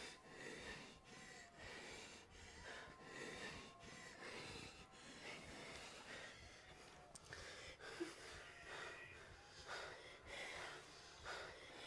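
A young man speaks softly and urgently up close.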